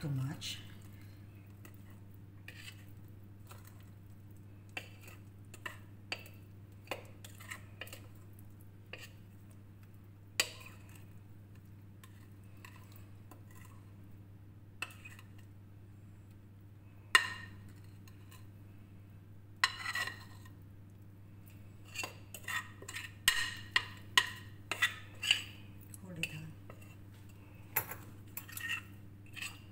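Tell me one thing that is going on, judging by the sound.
A spoon scrapes and clinks against a glass bowl.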